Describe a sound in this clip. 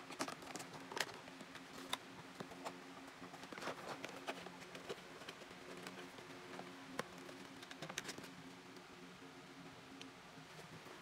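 A small cardboard box taps against a surface.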